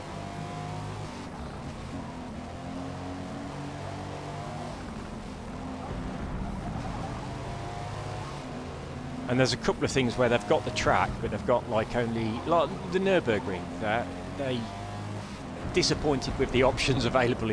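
A car engine hums and revs steadily as the car races along.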